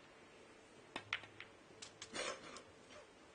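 Snooker balls knock together with sharp clicks.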